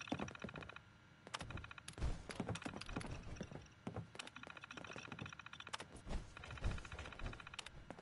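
A computer terminal chirps rapidly as text prints out.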